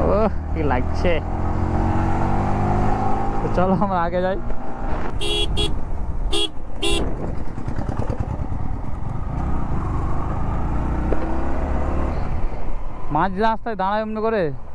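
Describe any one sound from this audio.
A motorcycle engine revs up and down sharply several times.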